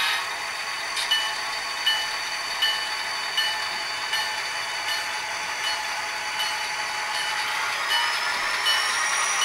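A model locomotive bell rings at a steady pace.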